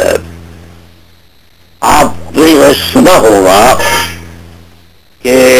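A middle-aged man speaks forcefully into a microphone, with pauses.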